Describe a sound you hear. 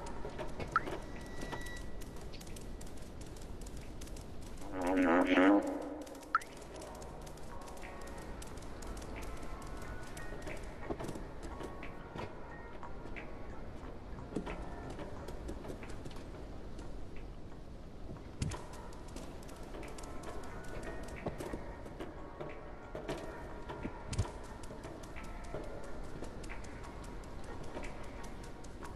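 A cat's paws patter softly on a hard floor.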